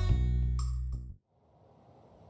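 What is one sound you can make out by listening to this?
Cheerful game music plays and stops abruptly.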